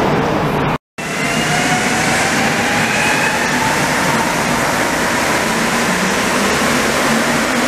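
An MR-73 rubber-tyred metro train pulls away, its motors whining higher in pitch.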